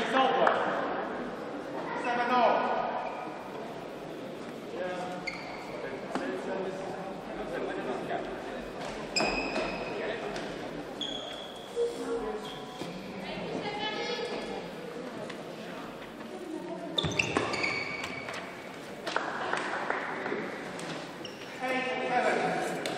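Sport shoes squeak on a hard court floor.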